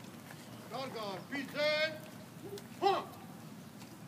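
An elderly man speaks into a microphone, heard through a loudspeaker outdoors.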